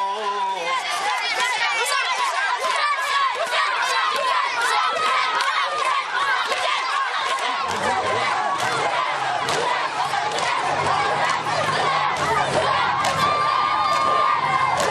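A crowd of men chants loudly outdoors.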